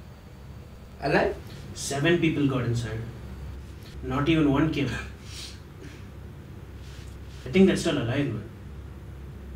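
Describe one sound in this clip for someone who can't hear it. A young man talks firmly, close by.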